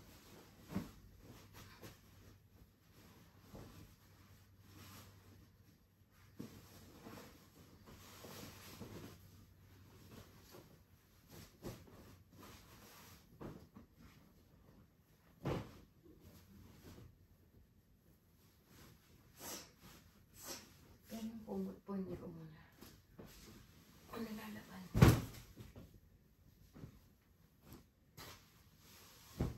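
Fabric rustles and flaps as bedding is shaken and folded.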